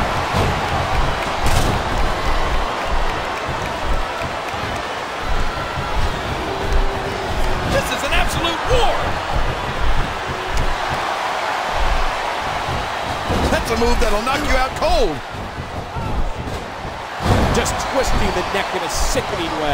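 Heavy bodies slam down onto a wrestling mat with thuds.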